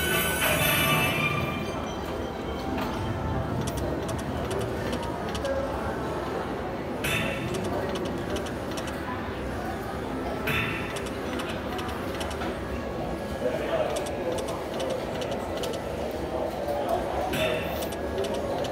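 A slot machine plays bright chiming electronic tunes.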